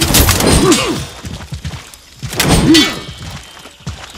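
Steel swords clash and ring.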